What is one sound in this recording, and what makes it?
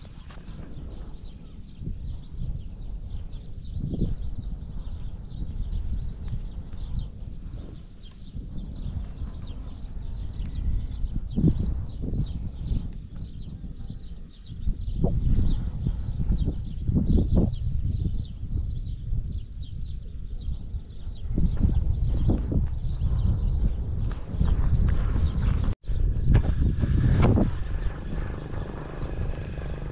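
Wind gusts and buffets loudly outdoors.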